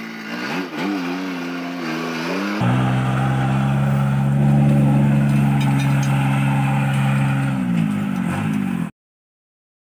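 A tractor engine rumbles and revs nearby.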